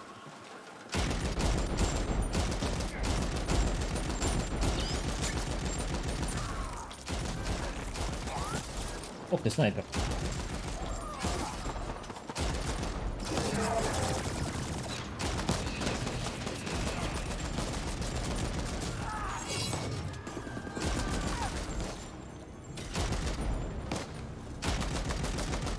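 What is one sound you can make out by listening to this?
Rapid gunfire and blasts from a video game ring out.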